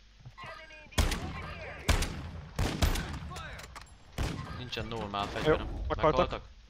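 A gun fires in sharp bursts of shots.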